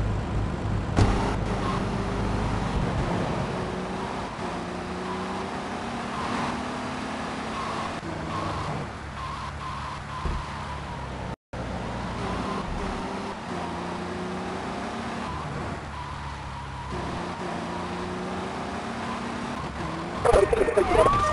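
A car engine hums as it drives along.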